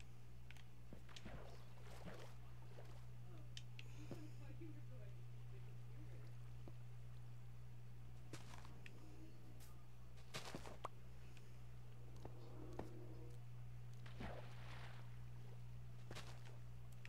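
Water splashes and flows.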